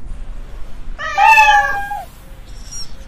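A kitten mews loudly and close by.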